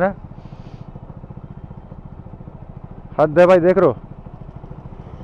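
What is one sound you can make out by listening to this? A motorcycle engine idles with a steady, fast putter.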